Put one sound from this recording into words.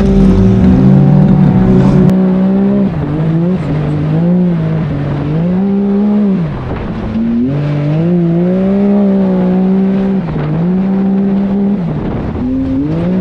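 An engine roars loudly, its pitch rising and falling as it revs up and down.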